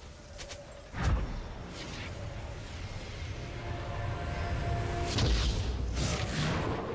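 Game spell effects whoosh and burst.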